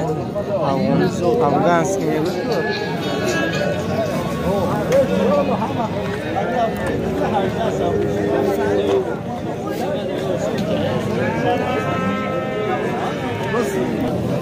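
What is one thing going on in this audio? A crowd of men talk loudly close by, outdoors.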